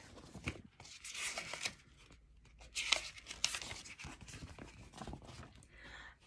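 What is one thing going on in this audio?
A book's pages rustle as they turn.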